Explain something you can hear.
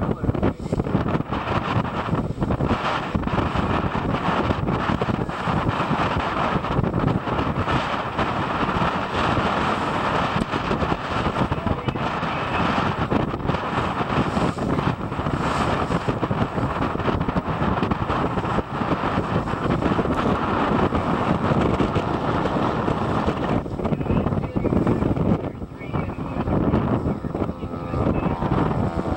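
Choppy waves slosh and splash.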